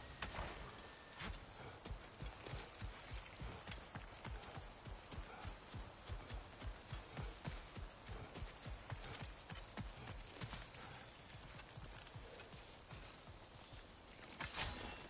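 Heavy footsteps crunch steadily along a path.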